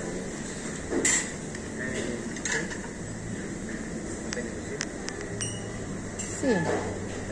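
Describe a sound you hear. Metal serving utensils clink against trays.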